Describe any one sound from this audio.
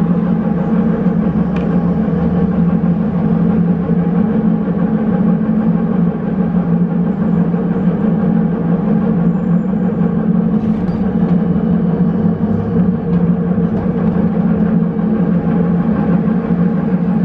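A bus engine hums steadily from inside while riding along.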